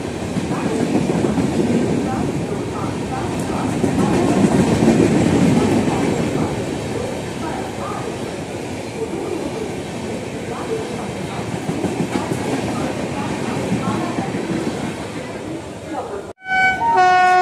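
A passing train rumbles and clatters loudly over the rails close by.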